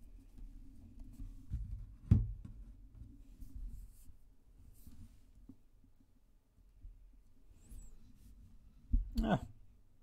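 Cards slide and tap on a wooden table.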